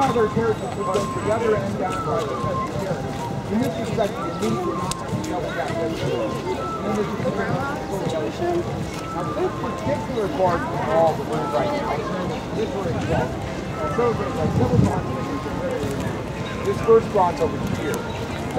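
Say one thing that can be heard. Footsteps shuffle on a paved path.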